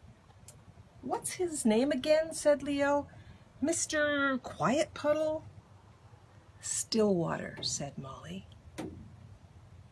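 An older woman reads aloud calmly and expressively, close by.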